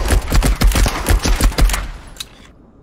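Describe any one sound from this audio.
A machine gun fires a rapid burst of loud shots that echo in a hard corridor.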